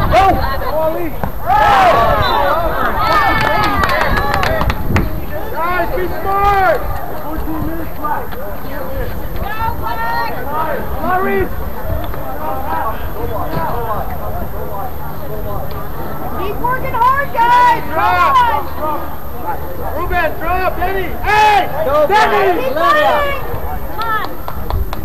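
Young players shout and call to one another outdoors, some way off.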